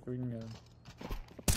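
A young man speaks briefly and quietly into a microphone.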